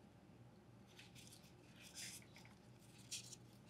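Small wooden pieces click and rub together in a man's hands.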